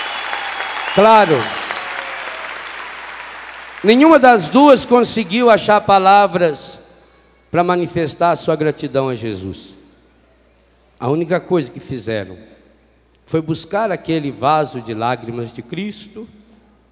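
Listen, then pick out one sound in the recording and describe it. A man speaks slowly through a microphone, in phrases with long pauses.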